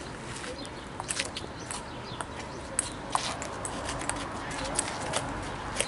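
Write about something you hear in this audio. A ping-pong ball clicks back and forth off paddles and a concrete table.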